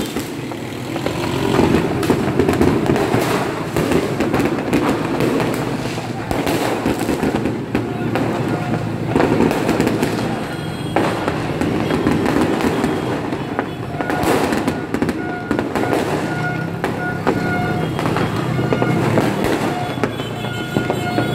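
Firecrackers crackle and pop in rapid bursts nearby.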